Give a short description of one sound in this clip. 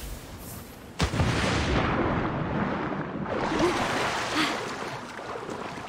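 Water splashes loudly as a body plunges in and swims.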